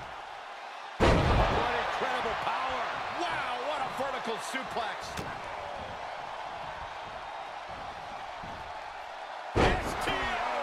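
A body slams hard onto a wrestling mat with a loud thud.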